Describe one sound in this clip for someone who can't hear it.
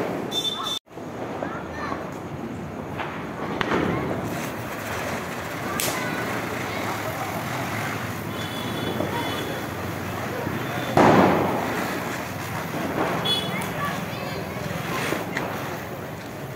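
A ground firework fizzes and crackles as it sprays sparks.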